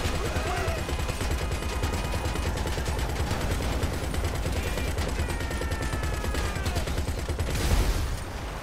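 A van engine roars as it drives fast over rough ground.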